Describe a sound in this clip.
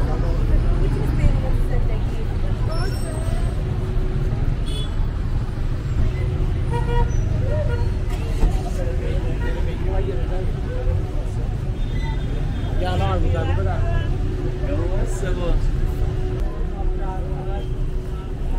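Men and women chatter nearby on a busy street.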